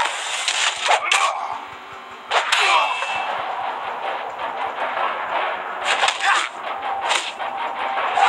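Swords clash and swoosh in a fight.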